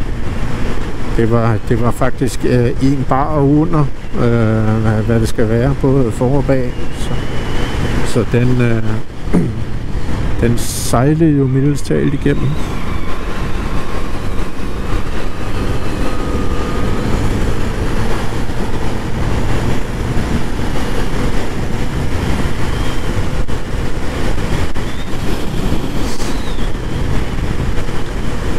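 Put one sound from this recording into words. Wind roars steadily against the rider.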